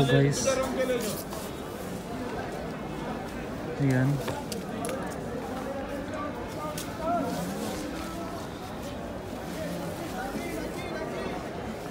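Clothes rustle as hands rummage through a pile of fabric.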